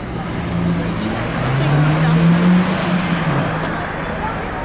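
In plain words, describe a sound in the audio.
A car engine hums as a car drives past close by.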